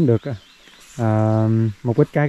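A young man shouts a long drawn-out call.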